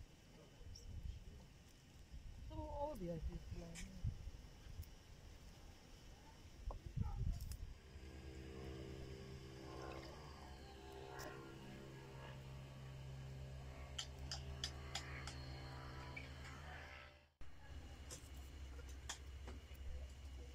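Fresh herb stems snap softly as they are picked apart by hand.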